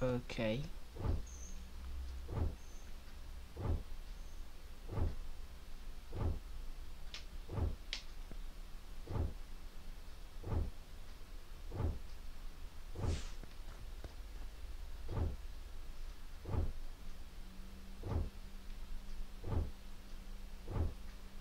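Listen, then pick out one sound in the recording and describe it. Soft thuds repeat at a steady pace as crops are harvested.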